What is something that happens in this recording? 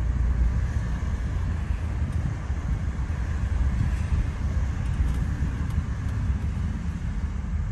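Road noise rumbles steadily inside a moving car.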